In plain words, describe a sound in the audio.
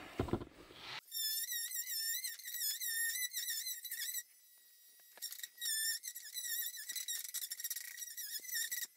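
An angle grinder whines at high speed as it cuts into tile.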